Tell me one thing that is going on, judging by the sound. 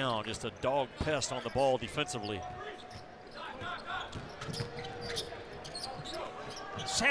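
A basketball bounces with dull thuds on the floor.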